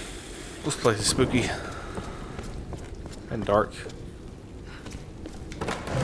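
A torch flame flickers and crackles.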